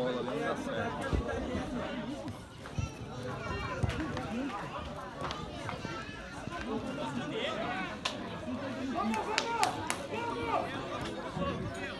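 Young men shout and call out to each other from a distance.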